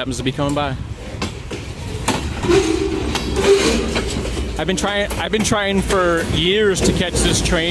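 A freight train rolls past close by with a heavy rumble.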